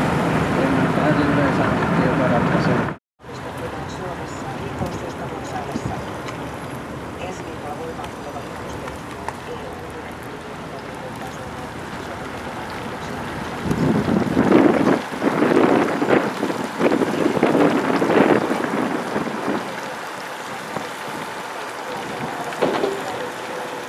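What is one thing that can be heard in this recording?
A car engine hums steadily while driving.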